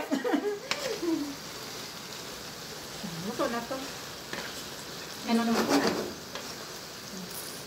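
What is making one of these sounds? A spatula stirs and scrapes food in a pan.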